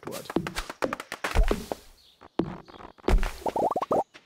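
An axe chops into a tree with hard thuds.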